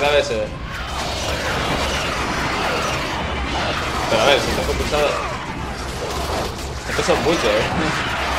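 Blows strike creatures with heavy impacts.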